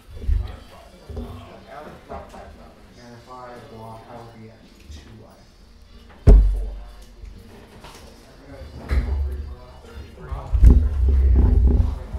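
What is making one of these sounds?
Plastic game pieces click and slide on a tabletop.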